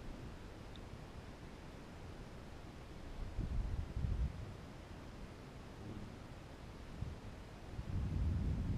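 Wind buffets the microphone in low, gusty rumbles.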